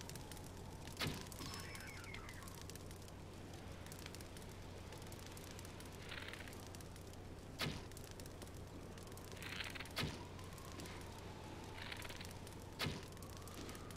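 Arrows are shot from a bow, each with a sharp snap.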